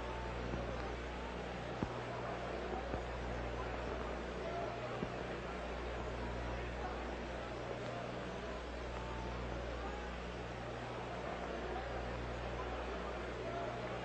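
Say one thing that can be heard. A large stadium crowd murmurs in the distance.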